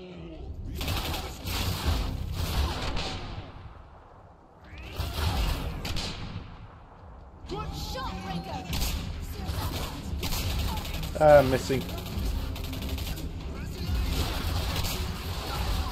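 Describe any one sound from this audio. Rifle shots crack and boom with a rumbling echo.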